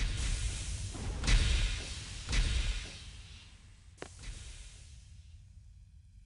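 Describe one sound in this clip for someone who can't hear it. A body slides and scrapes down a hard slope.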